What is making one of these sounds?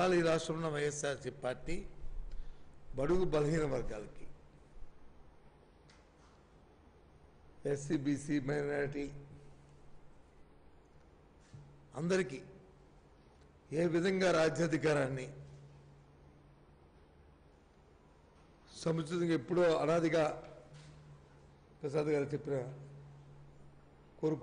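A middle-aged man speaks into a microphone in bursts, with pauses between phrases.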